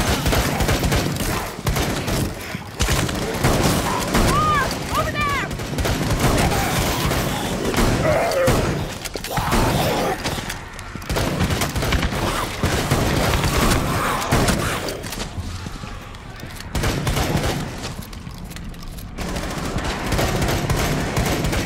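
Rapid gunfire crackles in sharp bursts.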